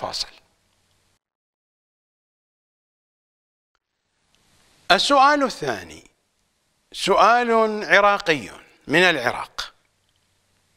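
An elderly man speaks calmly and slowly into a microphone, in short phrases with long pauses.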